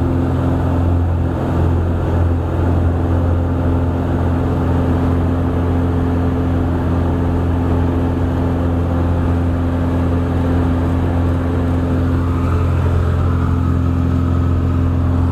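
Wind rushes past a small plane in flight.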